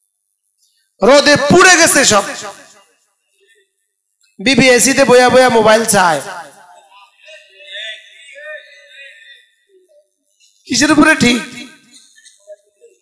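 A middle-aged man speaks with animation through a microphone, in short bursts with pauses.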